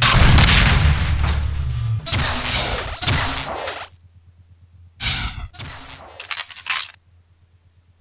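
A shotgun fires with heavy blasts.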